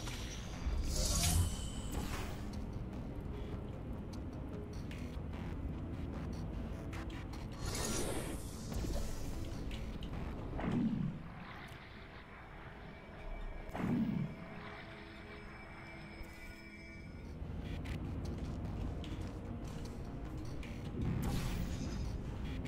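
A video game gun fires with sharp whooshing zaps.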